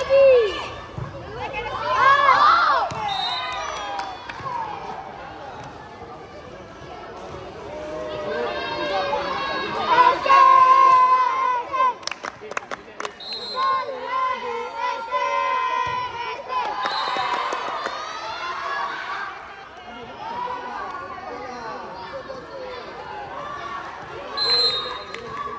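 Children shout and call out to each other in a large echoing hall.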